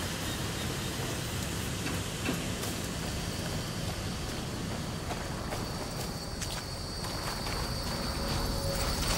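Footsteps crunch on dirt and sand.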